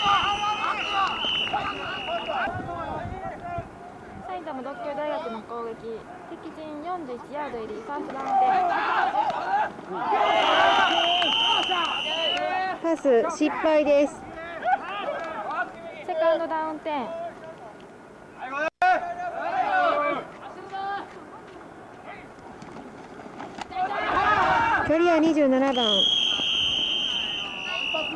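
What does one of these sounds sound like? Young men shout and call out across an open field outdoors.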